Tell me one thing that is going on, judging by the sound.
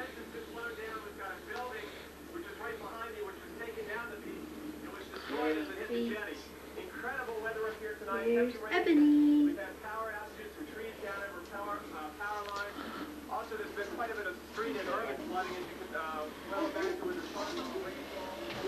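A young woman talks nearby in a relaxed way.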